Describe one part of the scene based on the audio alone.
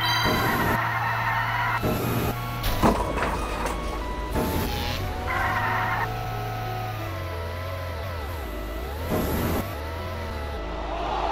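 Cartoon sound effects chime and jingle.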